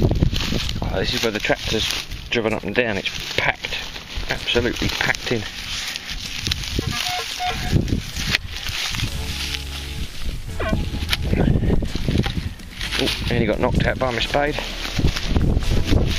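Soil crunches and crumbles as it is dug.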